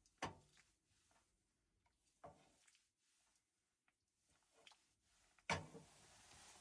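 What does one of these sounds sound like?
A ladle clinks against a metal pot as soup is poured.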